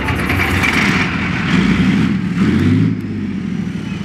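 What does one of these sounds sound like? A tank's engine revs up loudly, then settles back.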